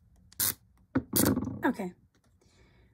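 A protective film peels off a surface with a short tearing sound.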